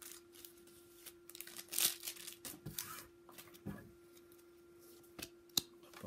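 Glossy cards slide and flick against each other.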